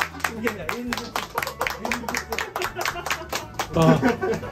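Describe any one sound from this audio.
People clap their hands rapidly.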